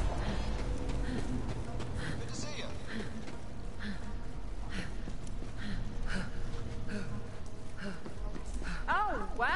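Footsteps thud at a steady walking pace.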